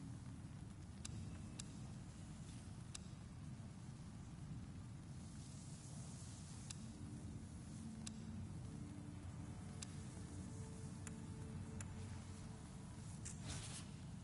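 Short soft interface clicks sound as menu selections change.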